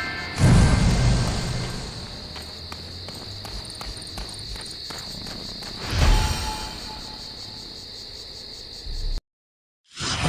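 Footsteps run over soft ground outdoors.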